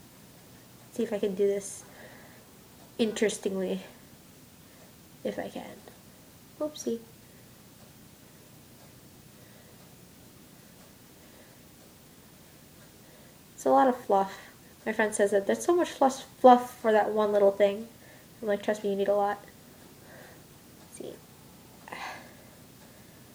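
A young woman talks calmly close to the microphone.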